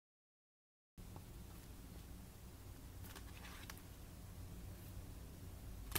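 Paper pages rustle and flip softly close by.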